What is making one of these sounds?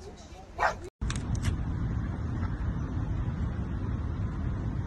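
A dog licks loudly and slobbers close by.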